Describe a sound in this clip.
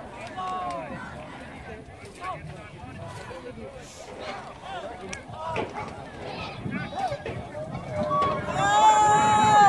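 Young men and boys shout and cheer nearby outdoors.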